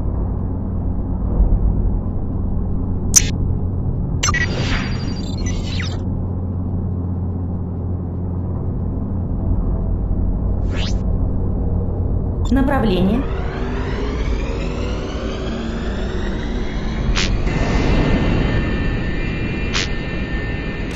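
A spaceship engine hums low and steady.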